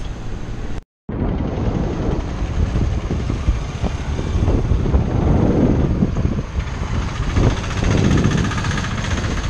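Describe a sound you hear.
Traffic rumbles past on a road.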